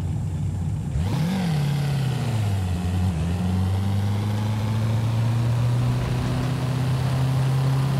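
A sports car engine revs up as the car accelerates through gears.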